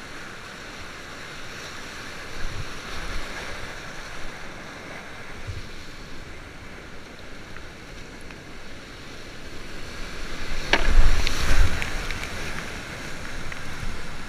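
A kayak paddle splashes into the water.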